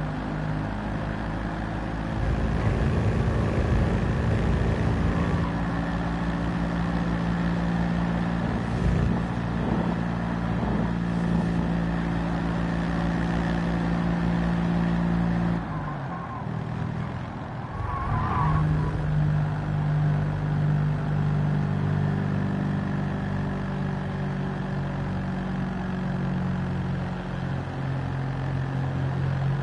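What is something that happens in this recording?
A small car engine buzzes loudly, its pitch rising and falling with gear changes.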